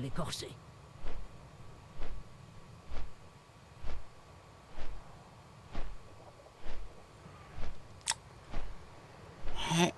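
Large leathery wings beat with a steady whoosh, about once a second.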